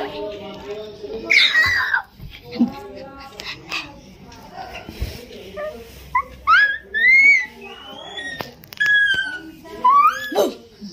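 A young boy giggles and chatters nearby.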